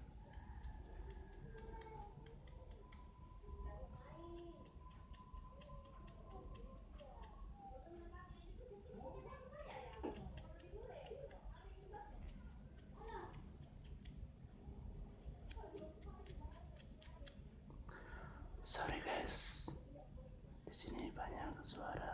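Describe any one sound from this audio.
Long fingernails tap and click together close by.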